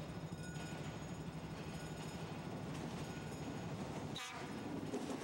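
A train approaches with a low rumble.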